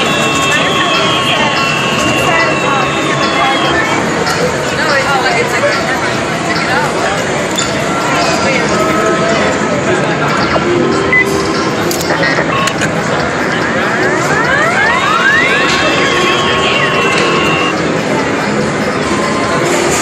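A dense din of many arcade machines fills a busy room.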